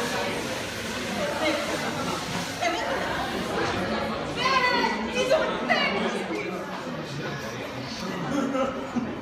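Many young women and men chatter at once in an echoing room.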